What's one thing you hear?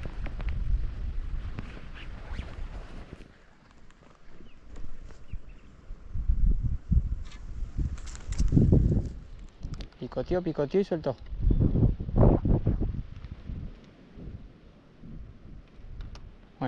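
Wind blows across the microphone outdoors in gusts.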